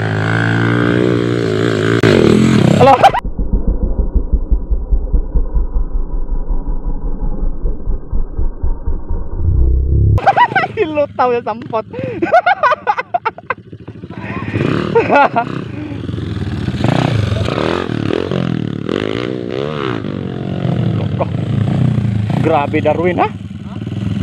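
A small dirt bike engine revs up and down nearby.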